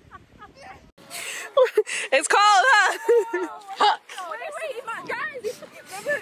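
A young woman laughs loudly up close.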